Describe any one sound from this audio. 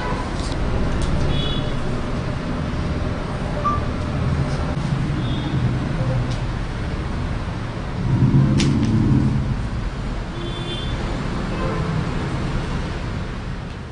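Plastic chess pieces click against a board.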